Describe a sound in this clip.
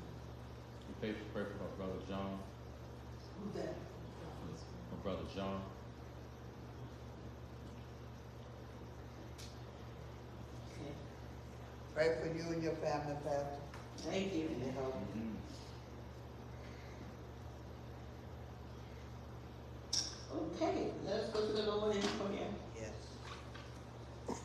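A woman speaks slowly and calmly into a microphone, with pauses, in an echoing room.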